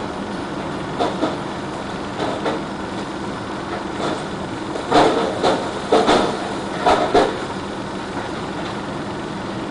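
Soil and stones tumble from a tipping truck bed and thud onto a pile.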